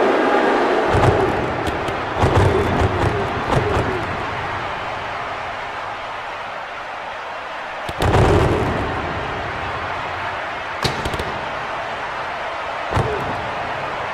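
Hockey sticks strike a puck with sharp clacks.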